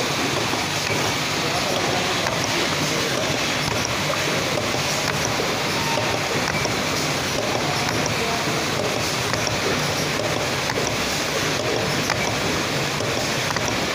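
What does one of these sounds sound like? A bottling machine whirs and hums steadily.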